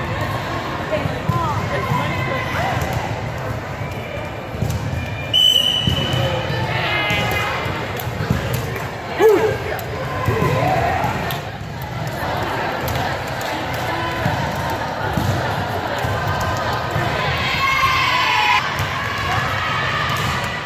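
Young women chatter and shout in a large echoing gym.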